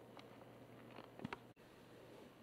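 Latches on a guitar case click open.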